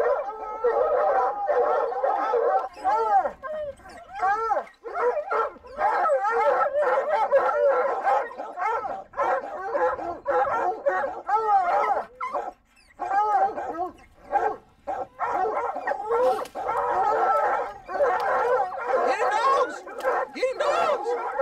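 Several hounds bay and howl loudly and excitedly, close by.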